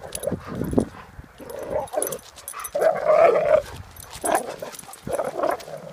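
A dog growls and grumbles playfully.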